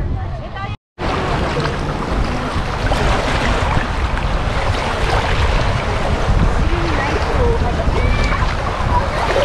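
Shallow sea water sloshes and splashes up close.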